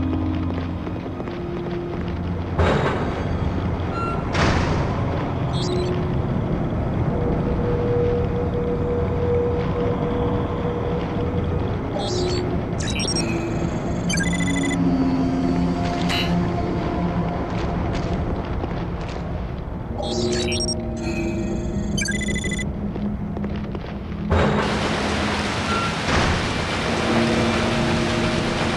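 Dark, droning music plays steadily.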